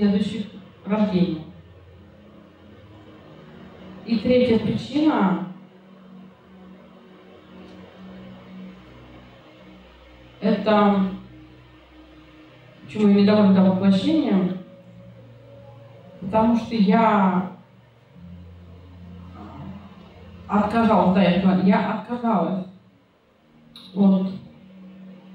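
A middle-aged woman speaks slowly into a microphone, with long pauses.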